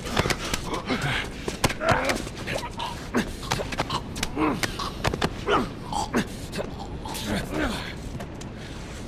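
Bodies scuffle and thump.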